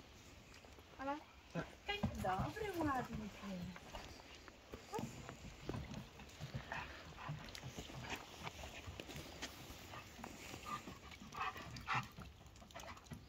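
A young woman speaks to a dog outdoors, a short way off.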